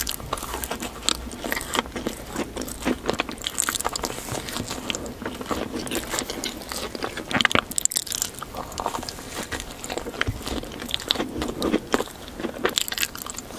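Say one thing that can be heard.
A woman chews wet and squishy mouthfuls close to a microphone.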